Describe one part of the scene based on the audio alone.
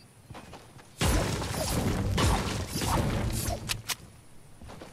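A pickaxe strikes a rock repeatedly.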